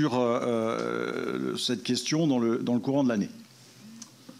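A middle-aged man speaks through a microphone, with animation.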